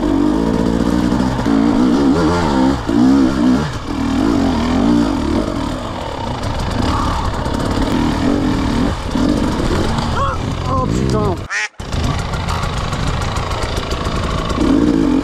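A motorbike engine revs and bogs up and down close by.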